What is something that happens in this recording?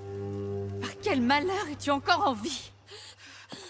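A woman speaks in shock.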